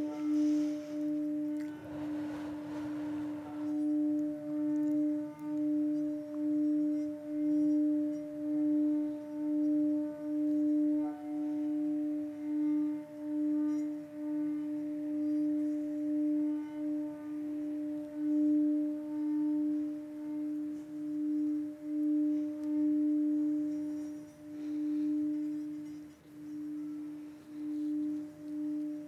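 A singing bowl rings with a steady, pulsing hum.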